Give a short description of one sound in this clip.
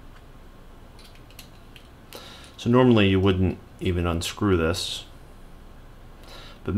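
Small metal parts click and scrape softly as they are twisted by hand.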